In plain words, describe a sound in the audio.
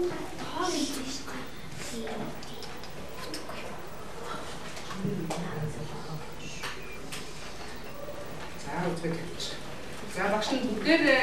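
A young woman speaks clearly to a group in a room.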